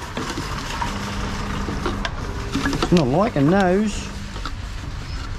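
A recycling machine whirs and hums as it takes in a container.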